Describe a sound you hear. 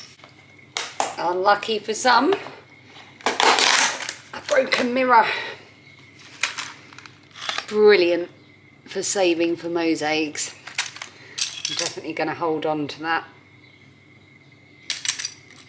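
Pieces of metal foil clink and rustle in a plastic tub.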